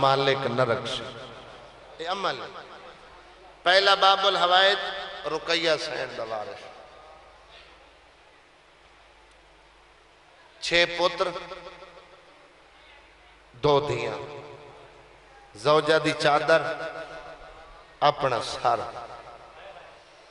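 A man recites loudly through a microphone in bursts, in a large echoing hall.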